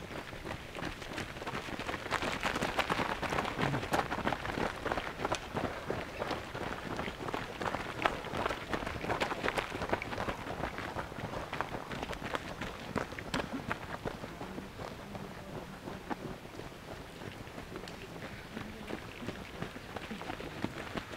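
Footsteps crunch on a gravel path as runners pass close by.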